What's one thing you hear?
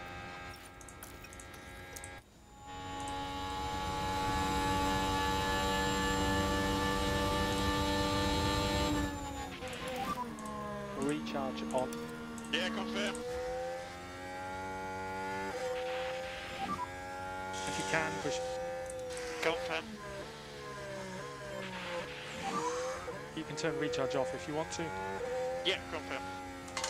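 A racing car engine whines at high revs, rising and falling as it shifts gears.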